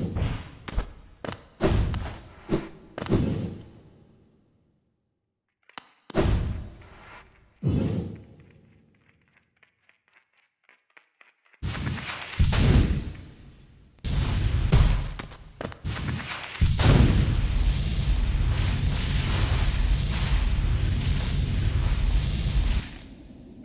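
Sharp whooshing bursts ring out again and again as a small figure dashes through the air.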